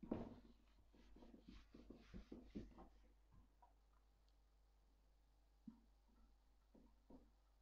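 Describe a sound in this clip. An eraser rubs softly across a whiteboard.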